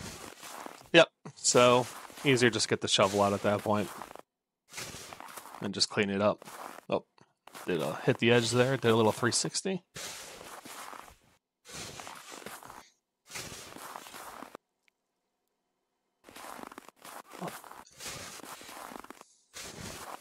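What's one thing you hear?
A shovel scrapes and pushes snow in short bursts.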